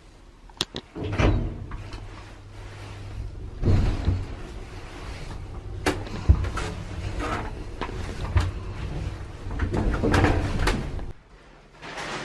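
An elevator rumbles and rattles as it moves.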